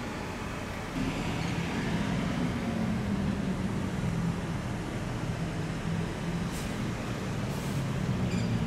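A supercar engine growls and revs as it pulls away slowly.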